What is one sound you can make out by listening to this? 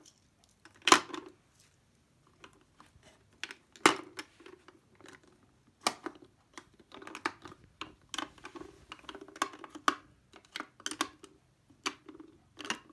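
Plastic pen caps clack and rattle as markers are lifted from a plastic stand.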